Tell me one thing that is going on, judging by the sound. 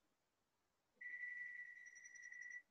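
A dental drill whines steadily at a high pitch.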